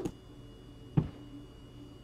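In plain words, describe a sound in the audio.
A small plastic tube drops and clatters onto a hard counter.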